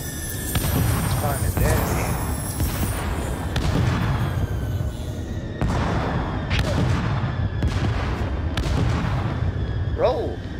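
Explosions boom and rumble with a low roar.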